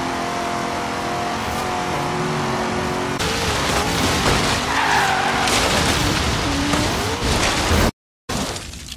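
A car engine roars at high speed and then slows.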